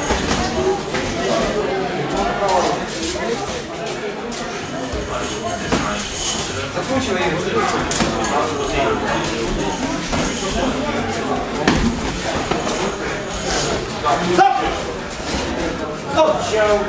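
Boxing gloves thud against each other and against a body.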